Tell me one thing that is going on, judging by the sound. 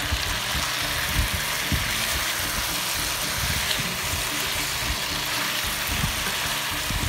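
A wooden spoon scrapes and knocks against a pan.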